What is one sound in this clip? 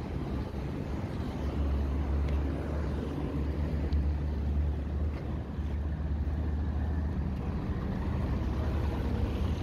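A van engine idles and drives past.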